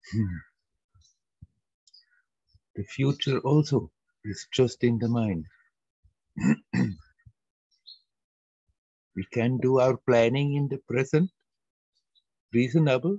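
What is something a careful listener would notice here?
An elderly man speaks calmly through a headset microphone in an online call, pausing often.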